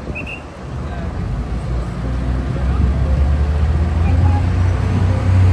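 City traffic rumbles nearby.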